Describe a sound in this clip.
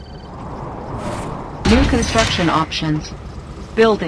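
A structure lands with a heavy thud and a mechanical whoosh.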